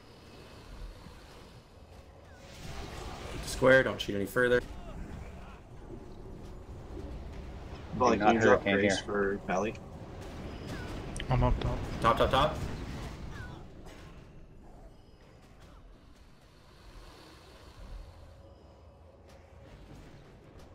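Fiery spell effects whoosh and crackle in a battle.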